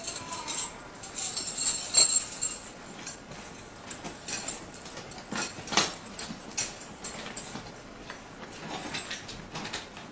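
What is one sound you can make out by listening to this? Metal restraints clink and click.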